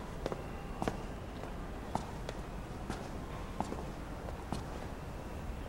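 Hard shoes step on a wooden floor at a steady walking pace.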